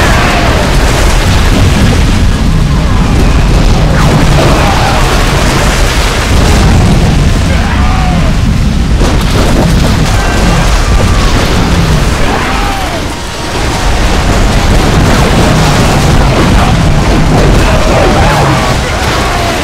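Cannons fire in booming volleys.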